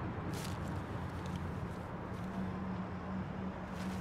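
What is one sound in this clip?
Paper money rustles in a man's hands.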